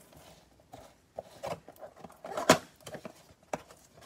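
A cardboard box flap is pulled open.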